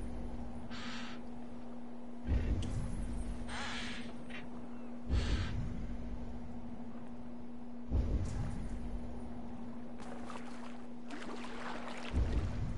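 Water laps gently against a wooden boat.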